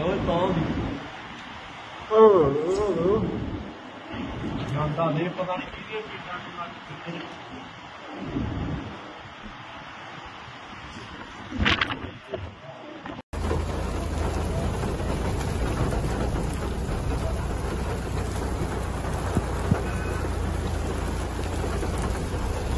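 Strong wind blows in gusts outdoors.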